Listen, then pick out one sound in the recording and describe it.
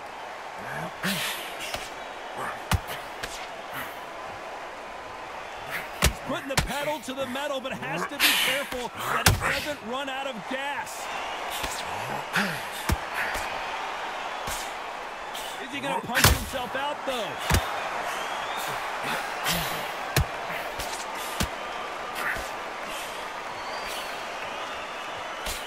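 Gloved punches land with sharp thuds.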